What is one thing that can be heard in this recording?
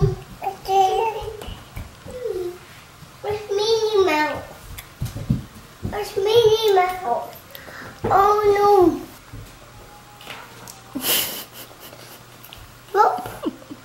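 A baby babbles and squeals close by.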